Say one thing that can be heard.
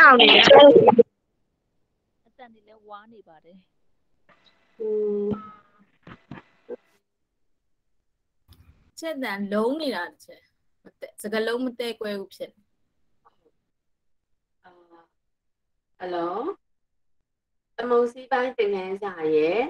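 A woman speaks through an online call in short, halting bursts.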